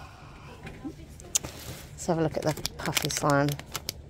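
A plastic packet crinkles as a hand picks it up.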